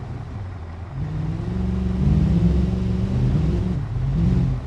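Water splashes as a vehicle drives through a shallow stream.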